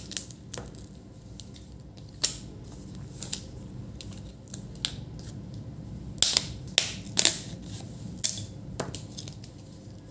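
Plastic bezel trim crackles as it is peeled away.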